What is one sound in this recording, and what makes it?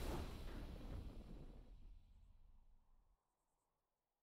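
A triumphant game victory chime rings out and fades away.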